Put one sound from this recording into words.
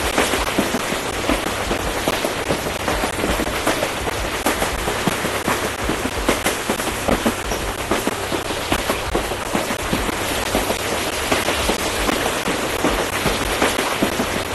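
A train rumbles and clatters along rails.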